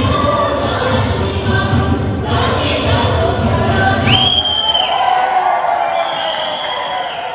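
Lively folk music with singing plays loudly over loudspeakers in a large hall.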